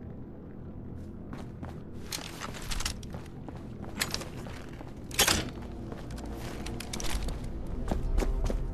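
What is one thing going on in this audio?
Footsteps thud on a hard floor in a hollow, echoing space.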